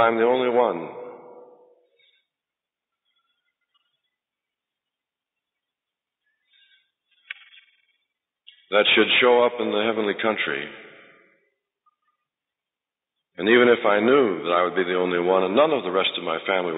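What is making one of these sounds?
A man speaks through a microphone.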